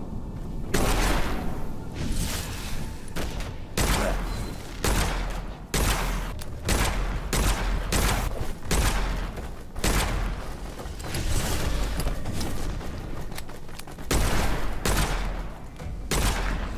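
Guns fire in loud, repeated blasts.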